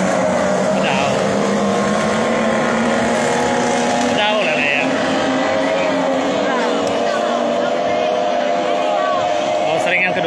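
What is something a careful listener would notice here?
Racing boats roar across the river in the distance.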